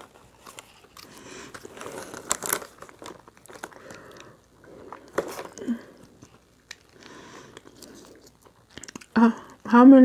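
Crispy food crunches as it is torn apart.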